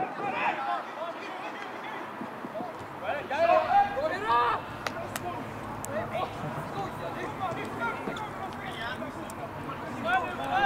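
Young players shout to each other across an open field, heard from a distance.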